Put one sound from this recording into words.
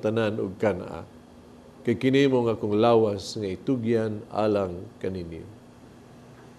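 A man speaks solemnly through a microphone in a large echoing room.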